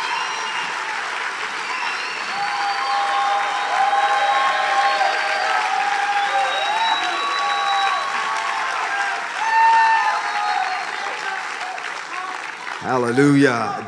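A crowd applauds.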